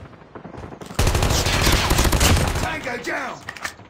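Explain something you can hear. Gunfire rattles in a rapid burst.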